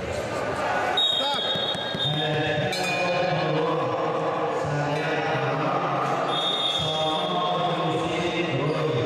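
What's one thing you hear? A referee blows a whistle in short blasts.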